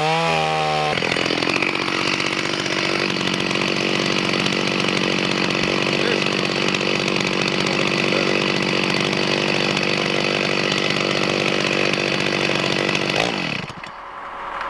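A chainsaw cuts through a log with a rough roar.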